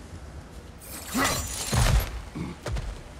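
A heavy blade whooshes and strikes with a loud impact.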